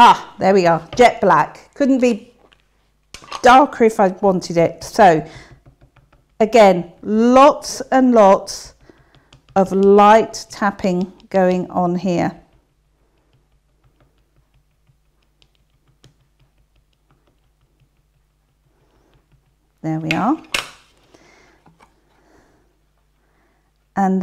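A middle-aged woman speaks calmly and clearly into a microphone.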